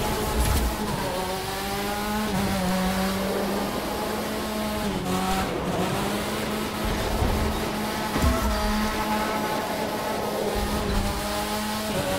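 A racing car engine roars steadily, its pitch rising and dropping as it shifts gears.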